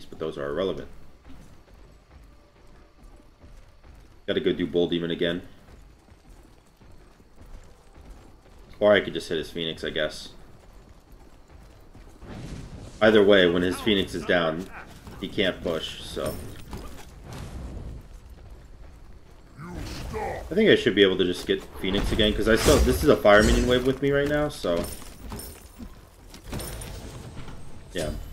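A young man talks with animation into a close microphone, in bursts.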